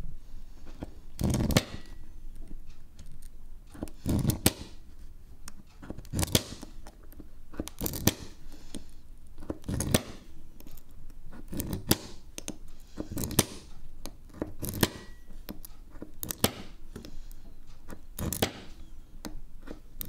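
A blade scrapes and taps against glass in short strokes.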